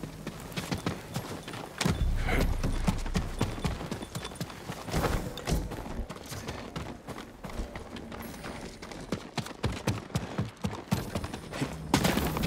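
Quick footsteps patter across wooden floors and then dirt ground.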